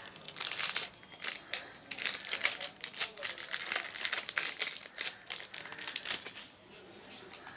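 Small parts click and rattle as a man handles them.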